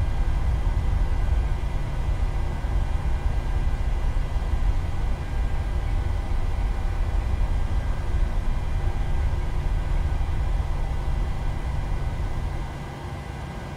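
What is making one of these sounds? Aircraft wheels rumble over a taxiway and then come to a stop.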